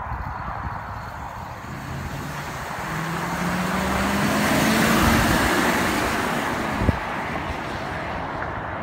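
Tyres hiss on a wet road as a van passes.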